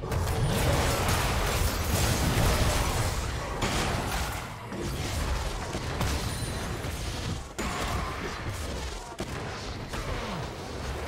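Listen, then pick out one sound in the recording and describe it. Magic blasts and impacts crash and whoosh in a fast fight.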